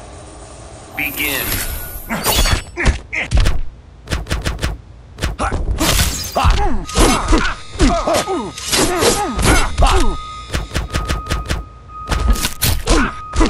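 Punches and blows land with heavy thuds and smacks.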